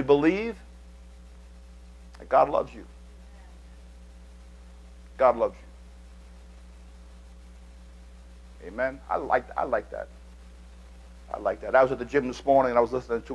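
A man speaks with pauses through a microphone in a large room.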